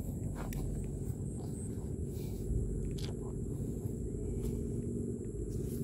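Footsteps crunch softly on dry grass.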